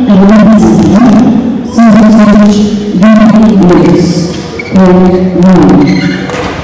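A badminton racket smacks a shuttlecock in a large echoing hall.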